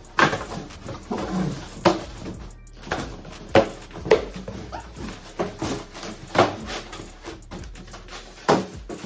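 Cardboard thumps and scrapes as a large box is handled.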